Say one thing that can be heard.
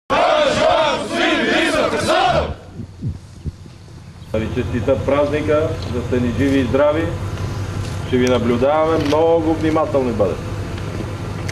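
An elderly man speaks calmly outdoors to a nearby microphone.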